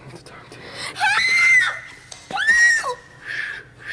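A young woman squeals in a high voice close by.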